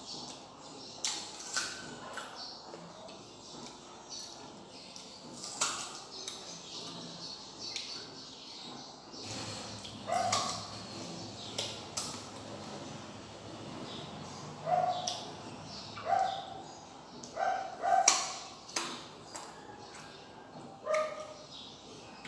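A young woman bites and crunches into crisp fruit up close.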